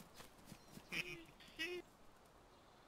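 Footsteps swish through grass.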